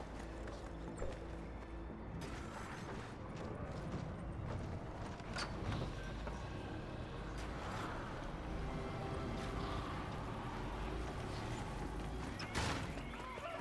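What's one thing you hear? A pickaxe strikes wooden walls with sharp thwacks.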